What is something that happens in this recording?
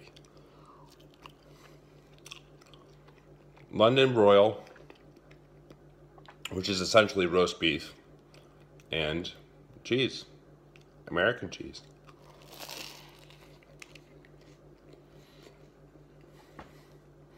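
A young man chews food noisily.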